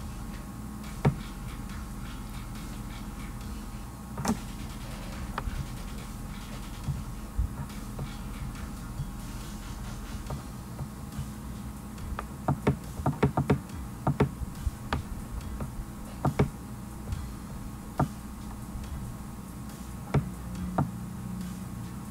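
A young man speaks calmly and quietly into a microphone.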